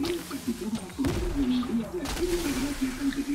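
Fireworks burst and crackle loudly.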